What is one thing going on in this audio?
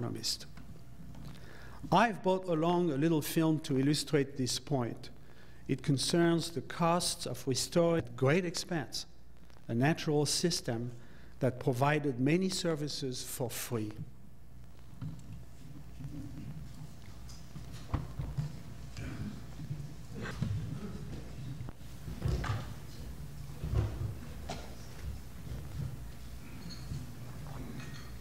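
Diners murmur quietly in a large room.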